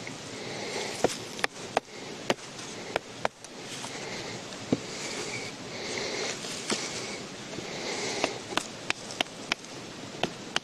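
Sharp wooden clicks and taps sound now and then.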